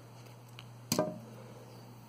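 Small pliers snip a wire with a sharp click.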